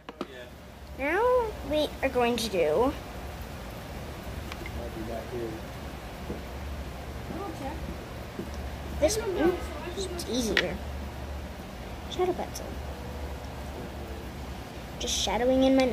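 A young girl speaks close to the microphone.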